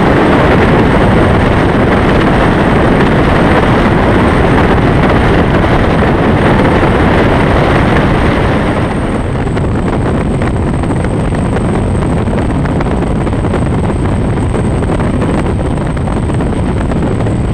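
A powerboat engine roars loudly at speed.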